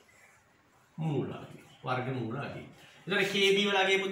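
A young man speaks clearly and calmly, close by.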